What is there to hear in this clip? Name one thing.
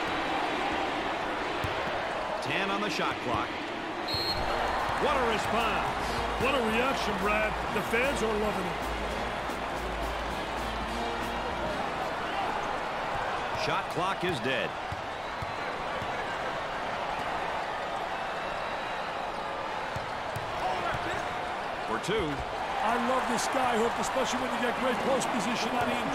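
A large crowd murmurs and cheers steadily in an echoing arena.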